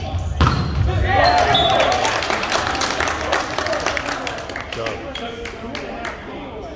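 A crowd cheers loudly after a point.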